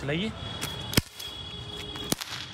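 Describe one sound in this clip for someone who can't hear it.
A cap gun fires a single sharp bang.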